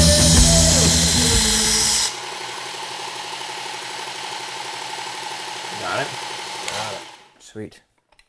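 A knife sharpener motor hums steadily, then stops.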